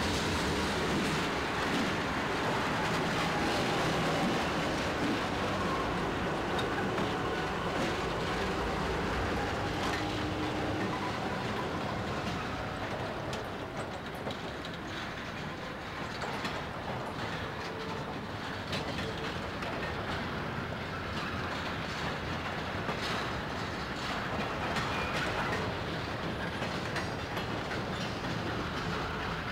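Freight cars roll past, clattering over the rail joints.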